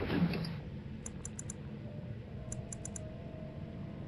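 A menu gives short, soft clicks.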